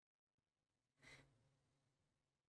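A man exhales sharply close to a microphone.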